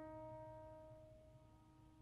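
A piano plays a few notes.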